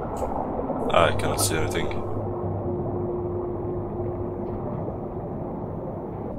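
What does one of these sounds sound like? A submarine's engine hums low and steadily.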